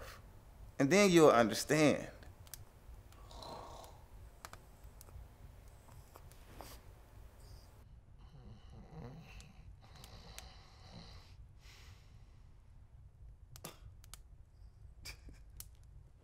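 A man speaks in a relaxed voice nearby.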